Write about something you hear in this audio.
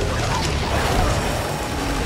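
An electric discharge crackles and buzzes.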